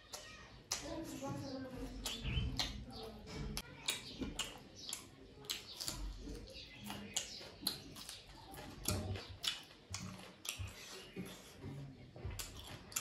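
Fingers squish and mix rice with curry on a metal plate.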